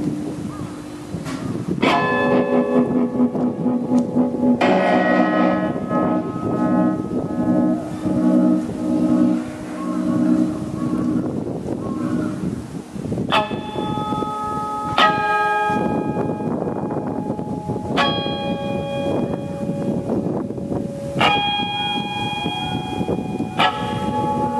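An electric guitar plays ringing notes and chords through an amplifier outdoors.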